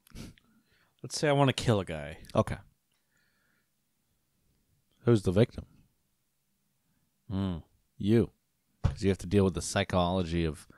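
Another young man talks calmly into a close microphone.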